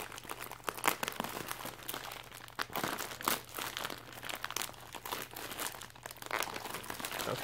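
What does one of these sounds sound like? A plastic mailer bag crinkles and rustles as hands tear it open.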